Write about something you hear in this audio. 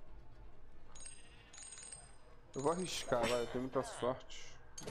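A short game chime rings out.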